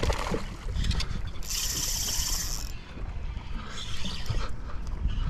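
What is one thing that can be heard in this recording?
Wind rumbles across the open water.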